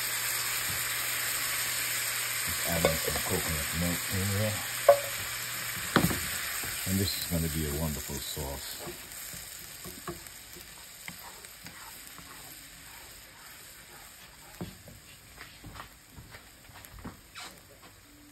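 A spatula scrapes and taps against a metal pan.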